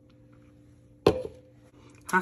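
A plastic jar knocks against a hard counter.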